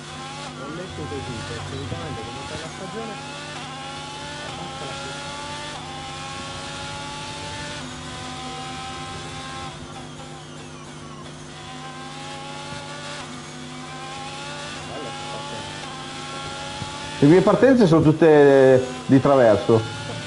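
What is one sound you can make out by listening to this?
A racing car engine revs up and down through the gears.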